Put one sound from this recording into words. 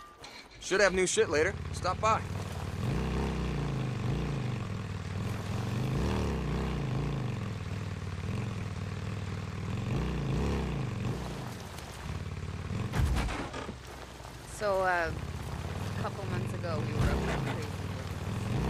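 A motorcycle engine rumbles and revs as the bike rides along.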